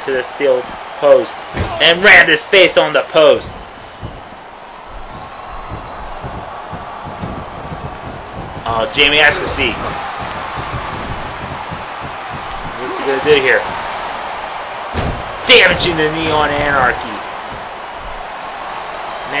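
A large crowd cheers and murmurs steadily in a big hall.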